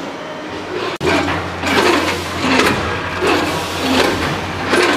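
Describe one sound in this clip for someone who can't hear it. Snack pieces rattle and clatter into metal hoppers.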